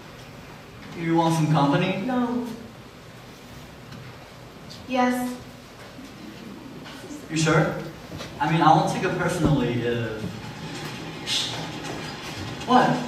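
A young man speaks clearly, heard across a quiet room.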